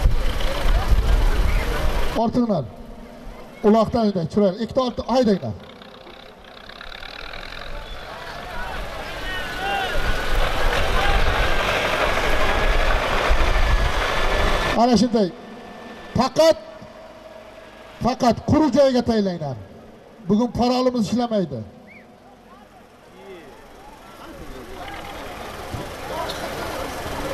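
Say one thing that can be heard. A large crowd of men clamors outdoors.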